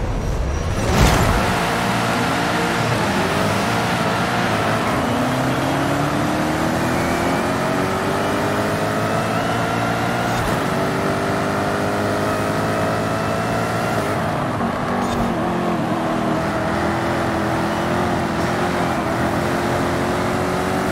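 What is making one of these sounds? A sports car engine roars and revs up through the gears as it accelerates.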